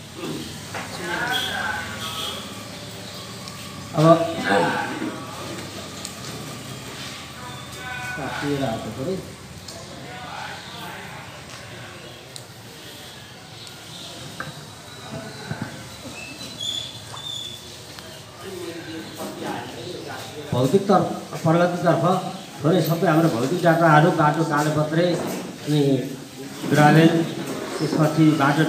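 A man speaks into a microphone in a steady, formal tone.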